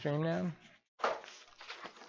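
Paper rustles in a man's hands.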